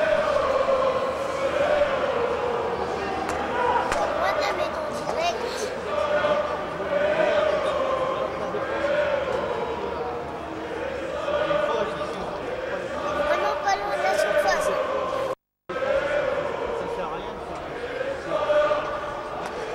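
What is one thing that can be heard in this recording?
A crowd of fans chants and sings across an open stadium.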